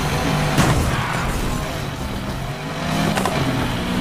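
Tyres screech as a car skids through a turn.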